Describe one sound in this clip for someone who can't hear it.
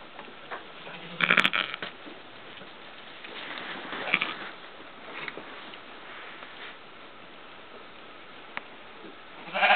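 Straw rustles and crackles as sheep move.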